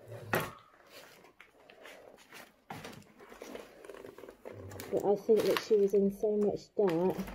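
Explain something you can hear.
Loose papers rustle and crunch underfoot.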